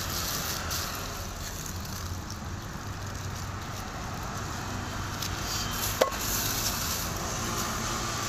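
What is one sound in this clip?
A plastic bag crinkles as hands fill and twist it closed.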